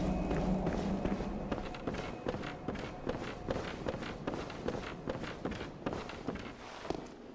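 Footsteps thud steadily on wooden floorboards.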